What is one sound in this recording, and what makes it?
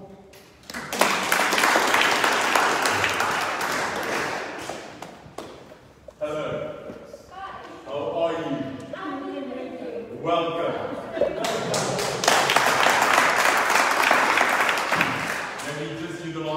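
A group of people applauds.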